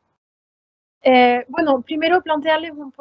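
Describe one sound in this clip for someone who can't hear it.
A woman speaks calmly into a microphone over an online call.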